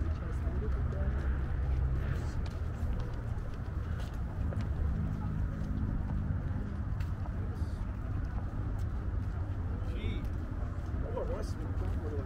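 Adults chat faintly at a distance.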